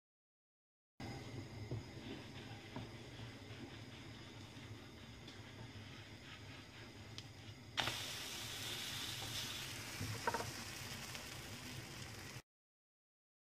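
Batter sizzles in a frying pan.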